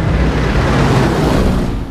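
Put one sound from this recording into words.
A large propeller plane roars low overhead.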